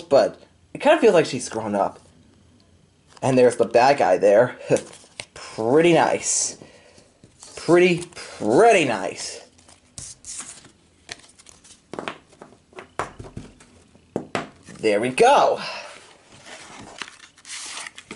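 Cardboard cases rustle and tap as hands handle them.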